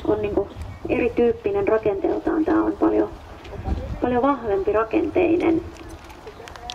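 A woman speaks in a high, lively voice close by.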